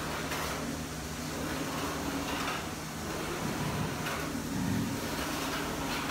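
A printer motor drones with a low steady hum.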